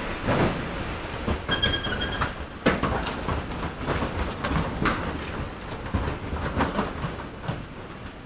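Footsteps tap on a hard floor in a large echoing hall.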